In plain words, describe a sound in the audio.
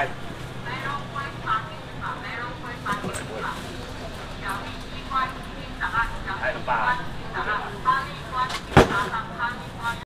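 A woman calls out loudly and repeatedly nearby.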